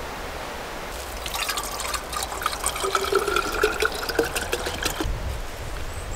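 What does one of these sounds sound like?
Plastic rustles and crinkles as a bottle is handled.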